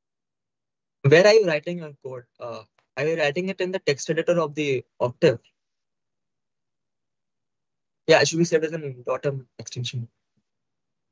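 A young man talks calmly into a microphone, close by, with pauses.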